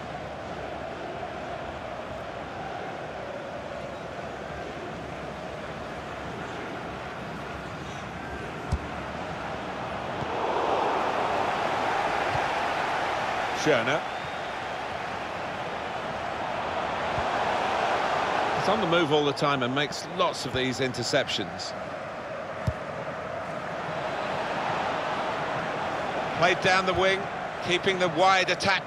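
A large crowd roars and murmurs steadily in a big open stadium.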